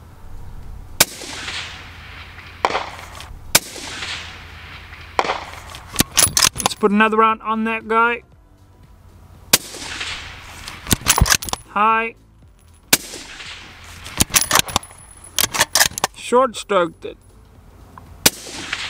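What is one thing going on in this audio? A rifle fires with sharp loud cracks.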